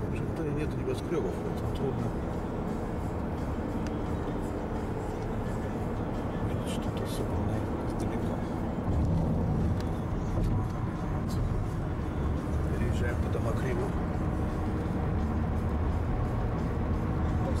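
A car's engine hums steadily as it drives along a highway.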